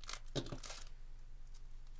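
Foil wrapping crinkles and tears as a card pack is opened.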